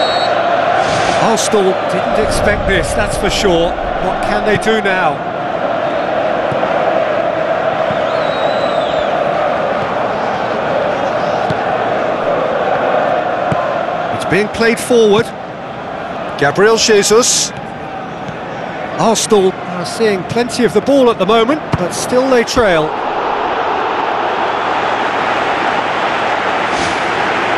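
A large crowd roars steadily in a stadium.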